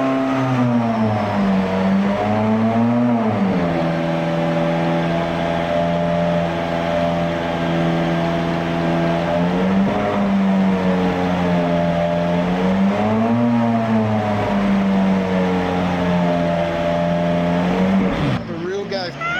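A sports car engine roars loudly on a rolling road, revving up and down in long sweeps.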